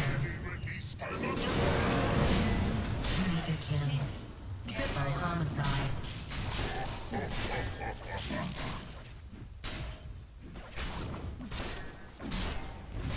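Video game spells zap and crackle.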